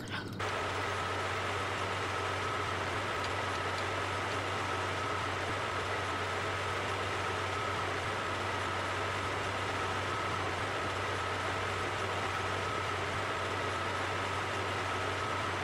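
A truck engine hums steadily as the truck drives along.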